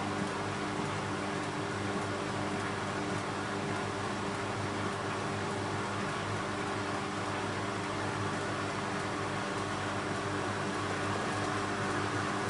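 A washing machine drum spins steadily with a constant motor hum.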